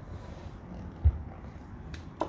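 A tonearm bumps once as a hand lifts it.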